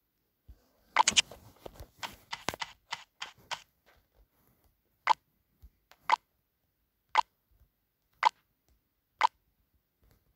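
Short electronic clicks sound as options are picked.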